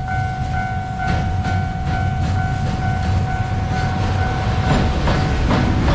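A train approaches and rumbles past with clattering wheels.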